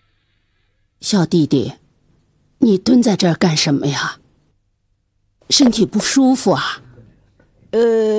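An elderly woman speaks with animation.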